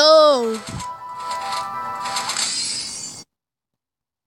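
A short electronic jingle plays as a game ends.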